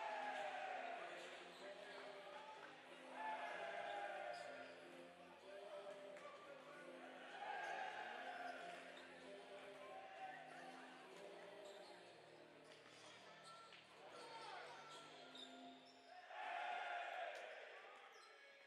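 Basketballs bounce on a hardwood court in a large echoing hall.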